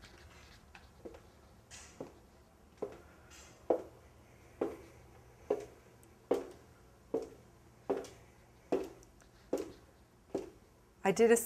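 High heels click on a hard wooden floor in slow, even steps.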